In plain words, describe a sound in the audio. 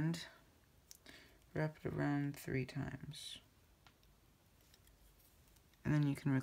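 Small plastic pieces click and rustle under fingers.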